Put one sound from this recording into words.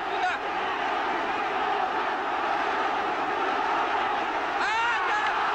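A large crowd murmurs and cheers steadily in a big hall.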